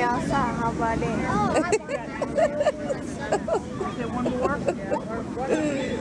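A teenage girl talks cheerfully close by.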